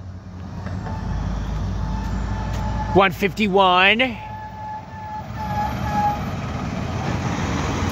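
A second truck's engine rumbles, growing louder as it approaches and passes.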